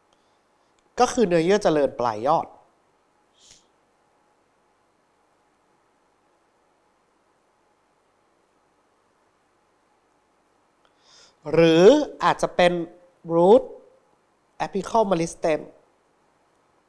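A man speaks calmly into a close microphone, in short phrases with long pauses.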